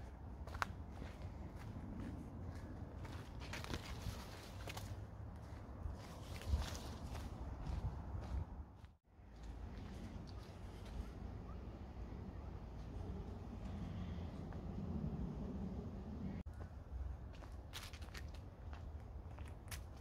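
Footsteps crunch on a leaf-strewn dirt path outdoors.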